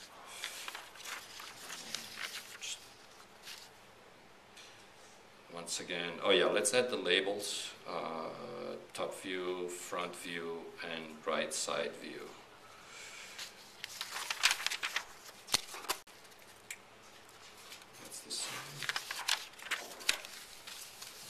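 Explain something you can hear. Paper sheets rustle and crinkle as they are handled.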